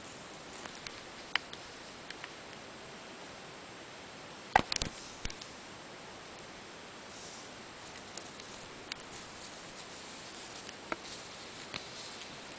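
A cat rubs and bumps right up against the microphone with soft knocks.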